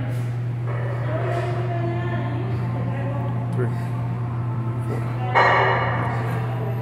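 A weight machine creaks and clunks as its arms are pulled down.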